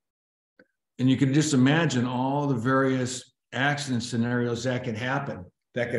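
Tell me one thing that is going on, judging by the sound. A man speaks calmly through an online call microphone.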